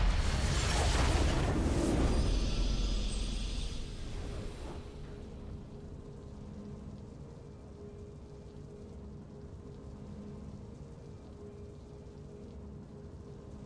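Triumphant video game music plays softly after the battle.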